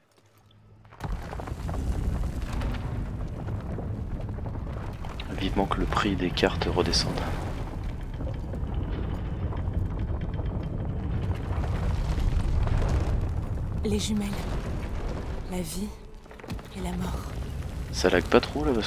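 A low rumbling drone fills an echoing space.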